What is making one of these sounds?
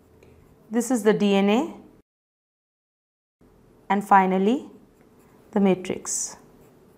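A pencil scratches across paper.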